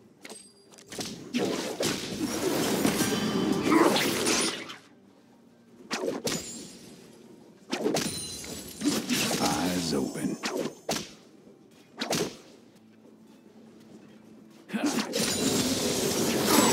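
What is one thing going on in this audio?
Fantasy battle sound effects whoosh and crash in loud bursts.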